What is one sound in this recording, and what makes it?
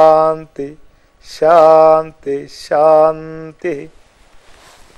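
An elderly man sings slowly in a deep, wavering voice close by.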